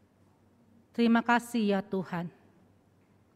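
A young woman speaks calmly and briefly through a microphone.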